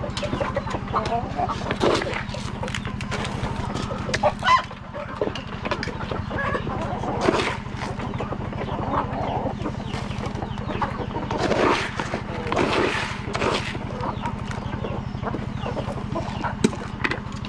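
Chickens cluck and peck close by.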